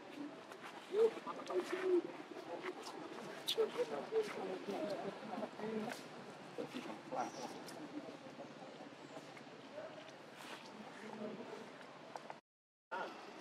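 Dry leaves rustle and crunch under a small monkey's feet.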